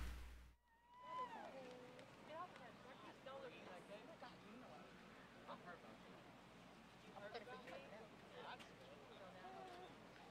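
A crowd of spectators chatters quietly at a distance outdoors.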